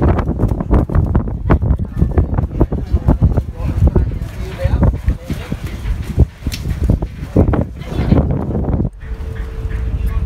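Strong wind gusts and rumbles against the microphone outdoors.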